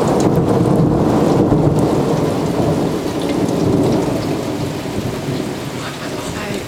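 Thunder rumbles low and long overhead, slowly fading.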